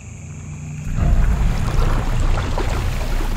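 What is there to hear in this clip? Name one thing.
Water sloshes and splashes as a man rises out of it.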